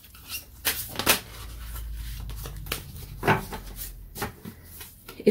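Cards rustle and slap softly as they are handled.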